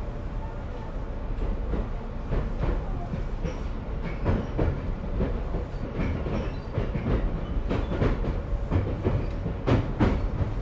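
A train rumbles along the tracks with rhythmic clacking of wheels over rail joints.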